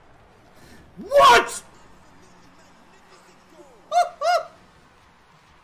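A young man shouts excitedly close to a microphone.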